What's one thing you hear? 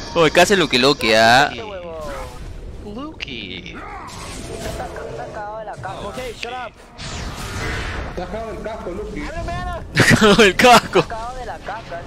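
A young man shouts and laughs loudly.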